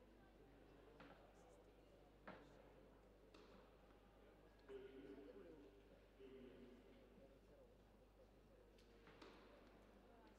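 Tennis balls are struck with rackets in a large echoing hall.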